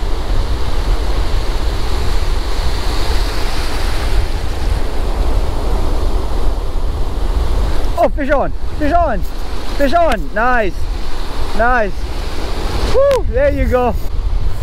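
Waves break and wash in foaming surf.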